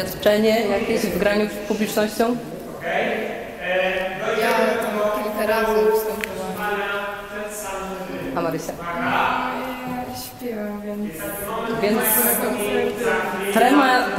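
A teenage girl speaks cheerfully and close by.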